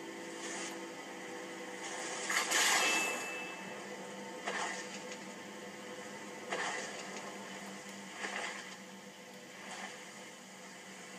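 A magic spell whooshes in short bursts.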